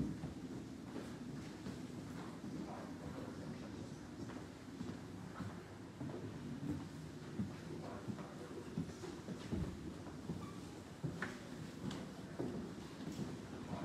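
Footsteps tap and shuffle on a wooden floor in a large echoing room.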